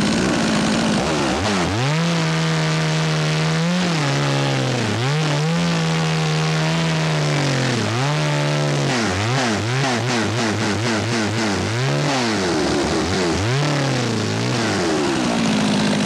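A chainsaw revs up and down, cutting into wood.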